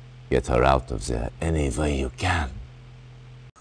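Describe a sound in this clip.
A middle-aged man speaks calmly and firmly, close by.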